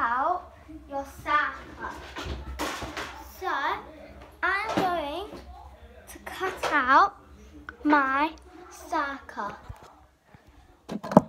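A young girl speaks close by with animation.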